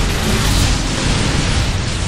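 A large fiery explosion booms.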